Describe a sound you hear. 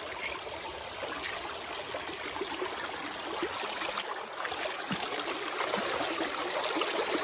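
Water flows and babbles over stones nearby.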